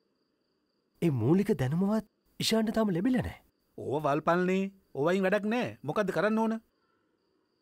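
A man speaks calmly and earnestly up close.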